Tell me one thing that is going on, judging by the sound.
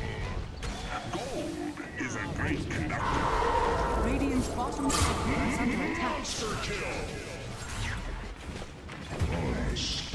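Magic spells blast and crackle during a fantasy battle.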